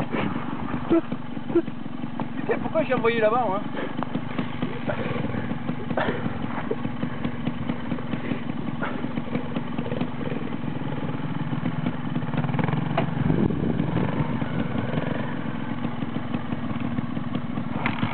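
A motorcycle engine idles with a steady low putter.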